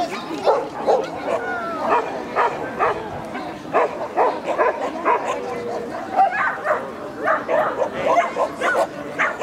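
A man calls out short, lively commands to a dog.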